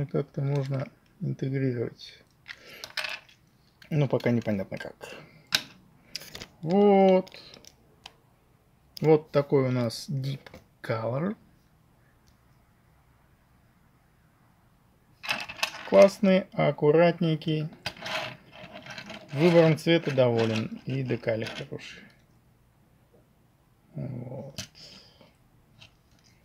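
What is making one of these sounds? Plastic toy parts click and rattle as hands handle them.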